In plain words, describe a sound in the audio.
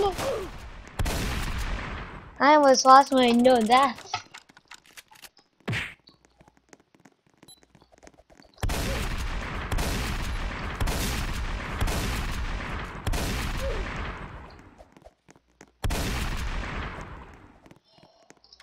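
A shotgun fires loud blasts, each followed by a fading rumble.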